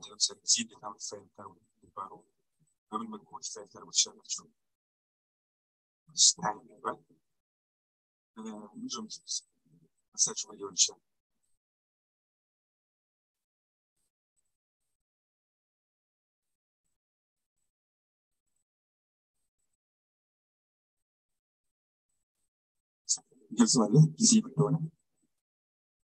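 A man speaks calmly into a microphone, heard through an online call, in short bursts with long pauses.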